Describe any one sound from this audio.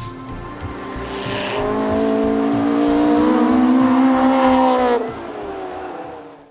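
A car engine roars loudly, rising in pitch and then dropping off suddenly.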